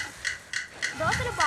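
A young woman sings softly.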